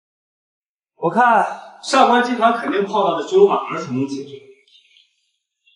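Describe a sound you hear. A young man speaks quietly and tensely.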